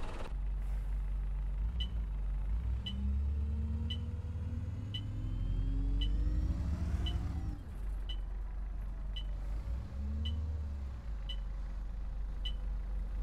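A diesel single-deck bus engine drones as the bus pulls along the road.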